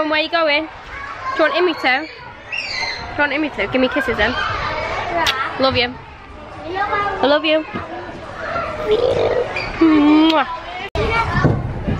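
A little girl whimpers and talks in a small voice close by.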